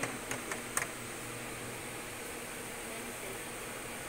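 Plastic trays clack as they are lifted and set down.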